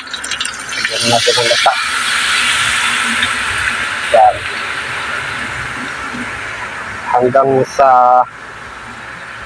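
Liquid pours through a strainer into a hot pan.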